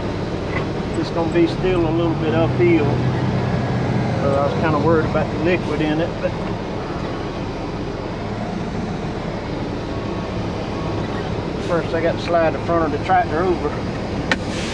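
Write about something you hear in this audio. A man speaks in short bursts nearby.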